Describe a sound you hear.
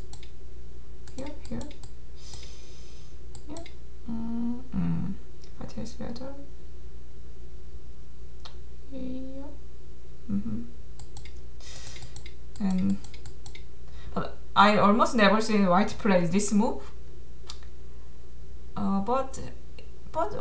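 A young woman speaks calmly into a microphone, in short phrases.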